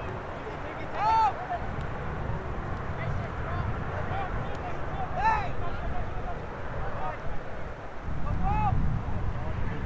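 Players shout to each other in the distance.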